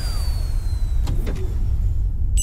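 A toy rocket crash-lands with a thud.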